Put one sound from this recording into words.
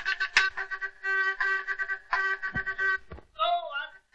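A telegraph key beeps out rapid Morse code.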